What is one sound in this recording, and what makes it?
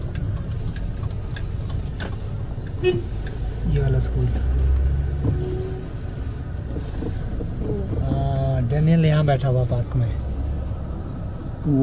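A car engine hums steadily from inside the car as it drives slowly.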